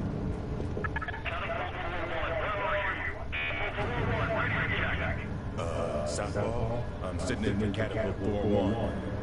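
A man speaks over a crackling radio.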